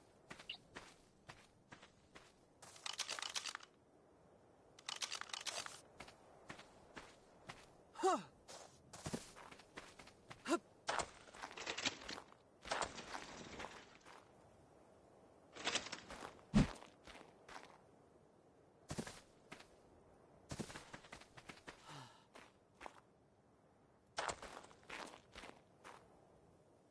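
Footsteps crunch over rock and grass.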